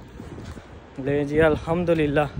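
A young man talks with animation close to the microphone.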